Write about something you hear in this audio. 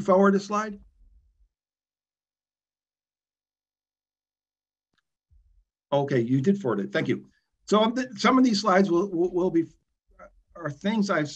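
A middle-aged man speaks calmly through an online call microphone, pausing between phrases.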